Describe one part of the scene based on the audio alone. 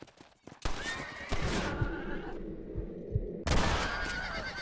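Gunshots ring out loudly and echo.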